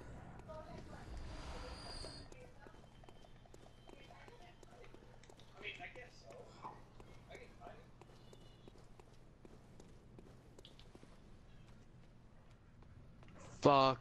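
Footsteps run over cobblestones.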